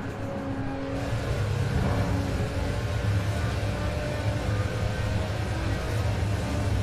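Tyres hiss over snow, growing louder.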